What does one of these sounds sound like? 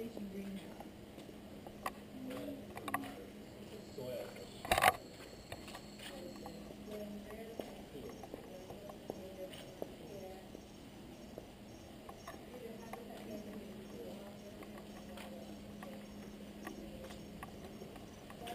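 A young woman talks quietly nearby.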